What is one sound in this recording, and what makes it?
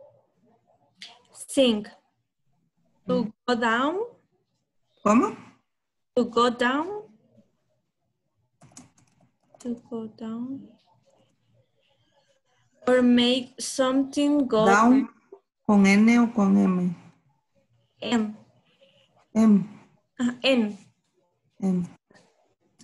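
A woman speaks calmly over an online call, pausing between phrases.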